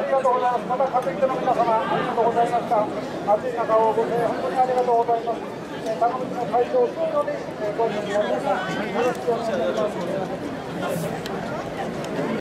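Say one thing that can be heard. A large crowd of men chants in unison outdoors.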